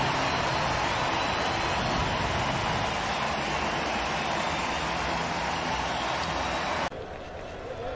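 A large crowd cheers and roars in a big stadium.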